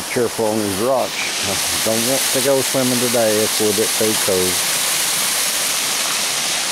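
Water splashes loudly down a small waterfall.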